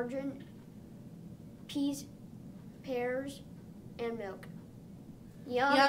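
A young child speaks clearly into a microphone in short phrases with pauses.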